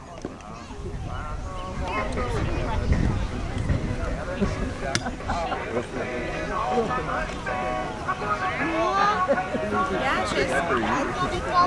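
Young children chatter and call out nearby outdoors.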